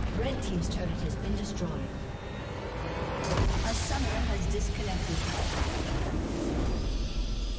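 Video game spell blasts and clashes crackle in a busy fight.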